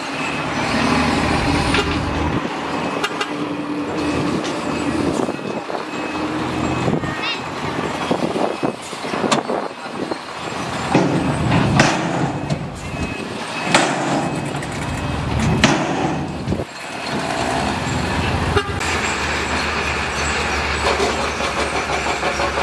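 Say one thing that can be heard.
A bulldozer engine rumbles loudly and steadily.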